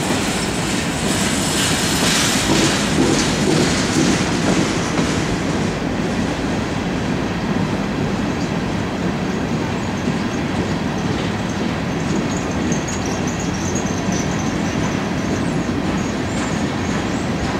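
A long freight train rumbles steadily past on the rails.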